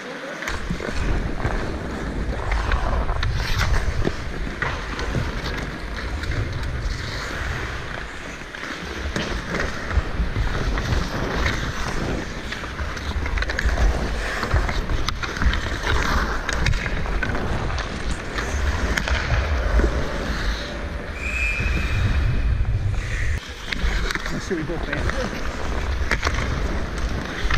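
Skates scrape and carve across the ice close by.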